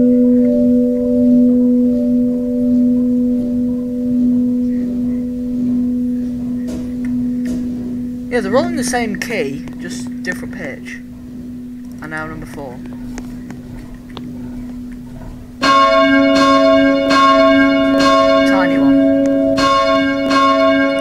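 Large bells ring with a steady humming tone that swells louder later on.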